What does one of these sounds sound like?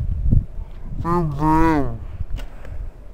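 A teenage girl speaks playfully close by.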